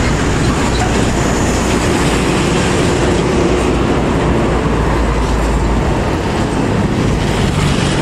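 A motorbike engine buzzes past.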